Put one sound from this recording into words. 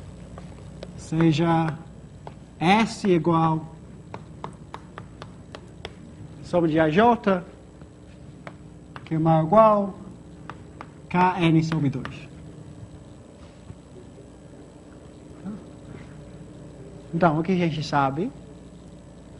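A young man speaks calmly through a clip-on microphone, in short phrases with pauses.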